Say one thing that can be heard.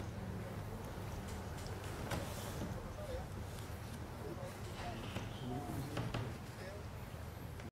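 A crowd of men murmurs nearby.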